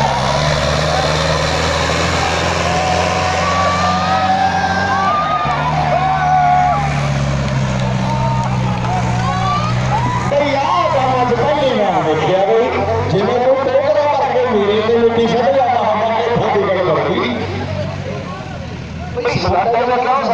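A crowd shouts and cheers excitedly outdoors.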